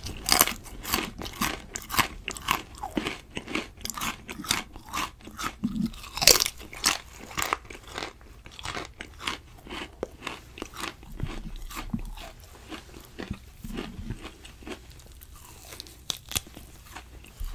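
A man chews and smacks his lips close to a microphone.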